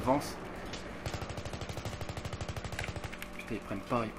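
An assault rifle fires rapid bursts of shots.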